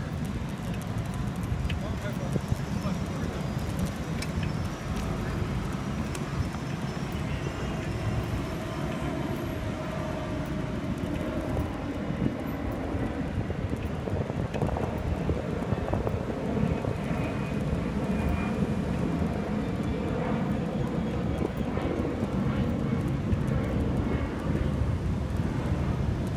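Wind rumbles and buffets outdoors throughout.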